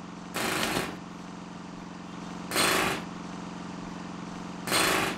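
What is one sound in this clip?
A power tool rattles in short bursts.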